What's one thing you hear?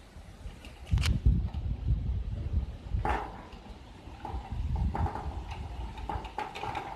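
Metal parts clank and scrape against a metal sheet.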